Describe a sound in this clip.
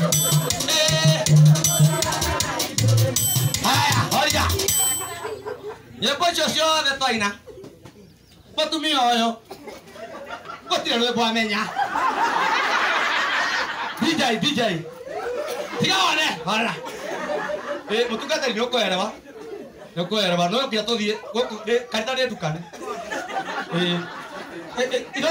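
A man speaks loudly and with animation to a gathered crowd.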